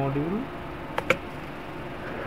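A plastic case is set down on a desk with a knock.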